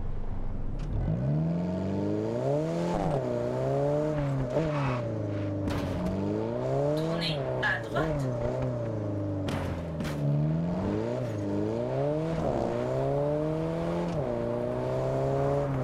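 A sports car engine revs up and down as the car accelerates and shifts gears.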